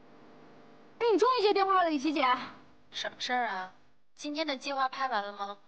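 A young woman speaks anxiously into a phone, close by.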